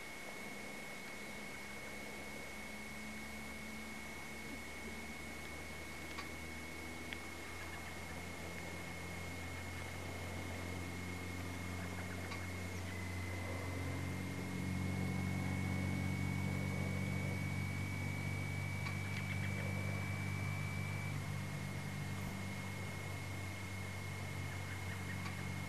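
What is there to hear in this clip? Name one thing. The piston engine of a single-engine propeller plane runs and builds power.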